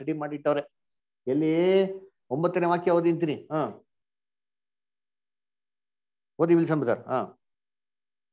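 A middle-aged man speaks calmly into a microphone, in short bursts with pauses.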